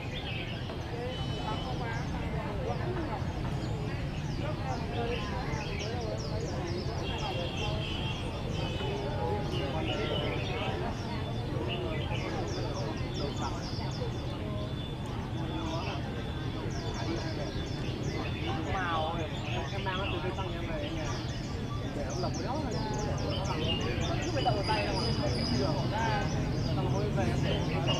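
Many caged birds chirp and sing.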